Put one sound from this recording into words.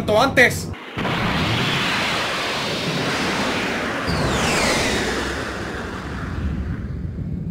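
A loud whooshing rush of energy roars steadily.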